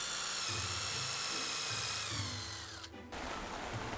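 An electric drill whines steadily, then winds down.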